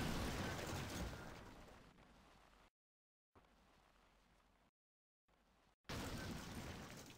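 A car crashes and tumbles down a slope.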